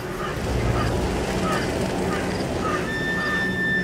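Crows caw overhead.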